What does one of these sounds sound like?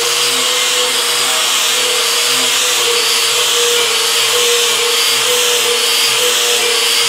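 An angle grinder whines loudly as it grinds rust off metal.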